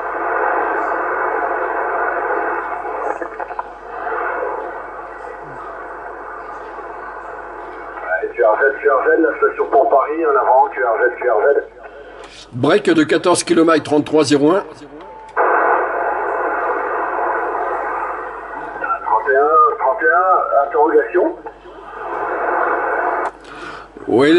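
Radio static hisses steadily.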